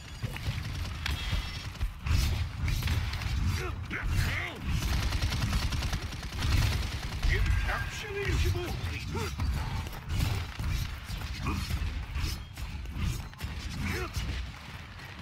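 Weapons fire in quick bursts with booming blasts.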